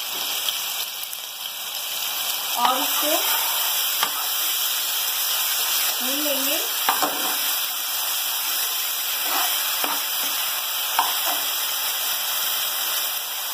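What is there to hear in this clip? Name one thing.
A paste sizzles in hot oil in a frying pan.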